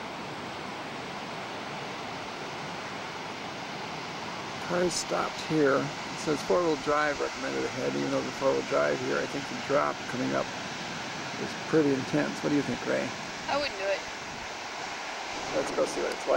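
Waves break on a beach in the distance.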